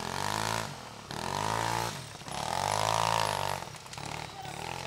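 Dirt bike engines rev loudly nearby, rising and falling in pitch.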